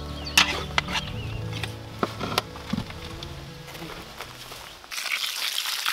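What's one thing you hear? A shovel scrapes and thuds into soil.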